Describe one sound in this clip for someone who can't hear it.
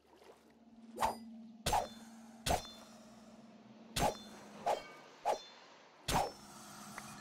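Stone blocks crack and break one after another.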